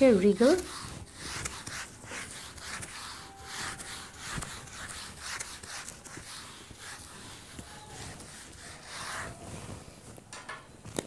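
A board eraser rubs across a whiteboard.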